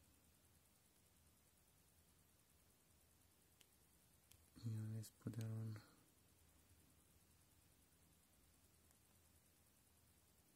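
A thumb clicks a small phone button softly.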